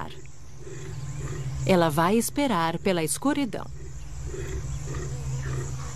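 A leopard snarls close by.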